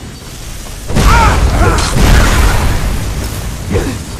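A burst of fire roars loudly and then fades.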